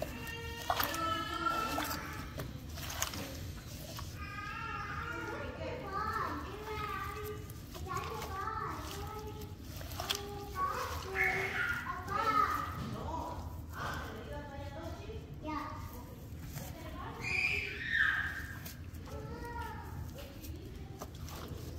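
Gloved hands squish and knead raw meat in a bowl.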